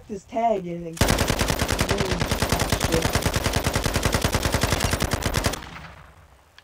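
An automatic rifle fires a rapid, steady burst.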